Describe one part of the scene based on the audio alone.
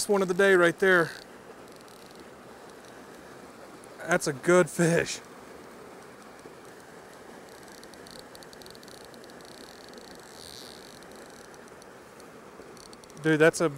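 A small waterfall splashes steadily into a pool.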